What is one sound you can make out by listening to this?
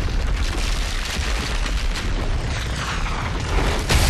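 Debris crashes down.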